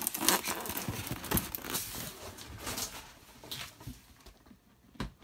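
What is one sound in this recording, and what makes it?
A hand rubs and squeaks across a foam lid.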